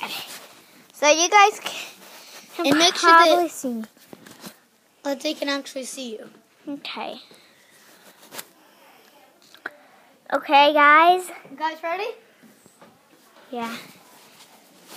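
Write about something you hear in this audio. A young girl talks close up in a high voice, with animation.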